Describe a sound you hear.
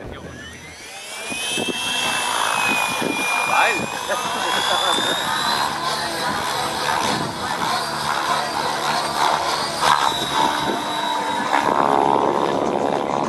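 Model helicopter rotor blades whir steadily as it flies.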